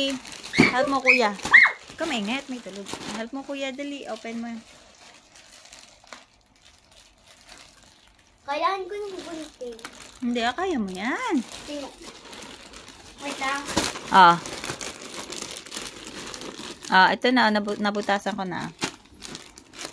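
A young child talks with excitement close by.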